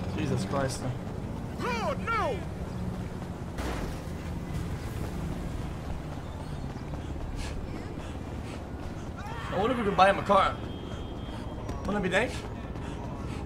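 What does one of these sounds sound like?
A young man talks loudly and excitedly close to a microphone, in short bursts.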